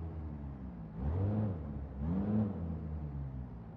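A car engine revs up briefly twice.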